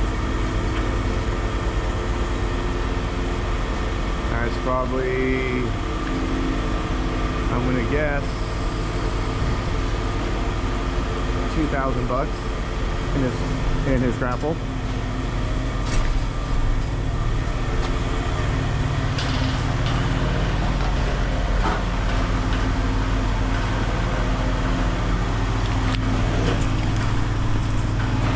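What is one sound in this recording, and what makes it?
A heavy machine engine rumbles steadily close by.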